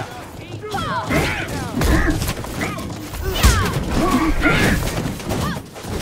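Weapons clash and clang in a fight.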